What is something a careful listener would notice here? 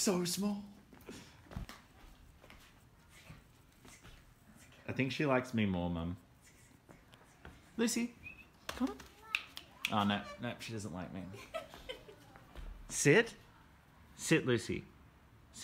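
A puppy's paws patter on hard tiles.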